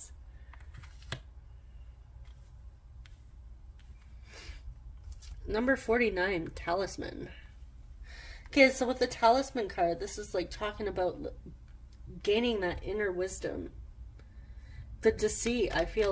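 Playing cards slide and tap softly on a cloth surface.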